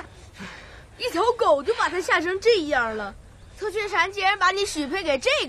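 A young boy speaks sharply and with animation.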